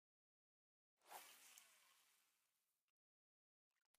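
A lure splashes into water.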